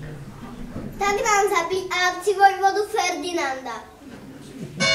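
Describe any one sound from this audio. A young boy calls out loudly.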